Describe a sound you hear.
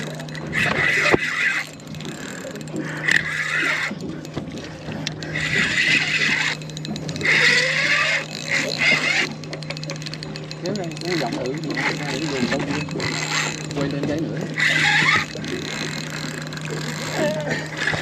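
A fishing reel clicks as its handle is wound.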